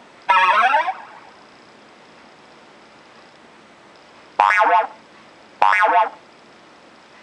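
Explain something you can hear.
Chiptune jump sound effects chirp upward from a video game.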